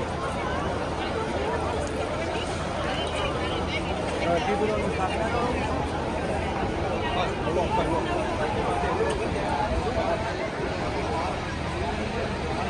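A crowd of people chatter and call out nearby, outdoors in the street.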